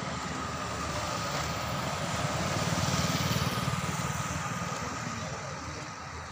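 A motorbike drives past on the road.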